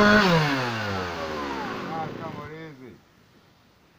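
A chainsaw engine runs and winds down.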